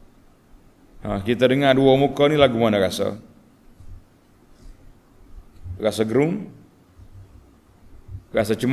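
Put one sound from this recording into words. An elderly man speaks calmly and melodiously into a close microphone.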